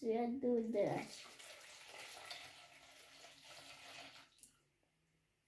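Water pours into a plastic bowl.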